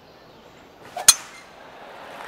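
A golf club strikes a ball with a sharp crack.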